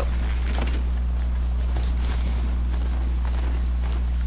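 Heavy mechanical hoofbeats thud on frozen ground.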